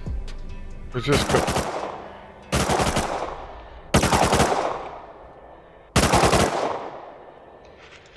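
A rifle fires loud single shots that echo and fade.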